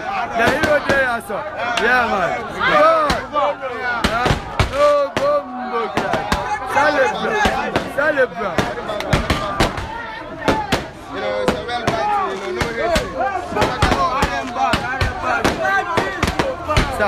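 A young man raps loudly and energetically close by.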